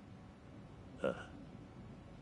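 A young man answers briefly in a low, gruff voice.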